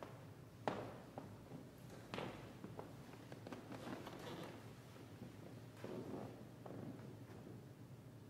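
Footsteps thud softly across a floor.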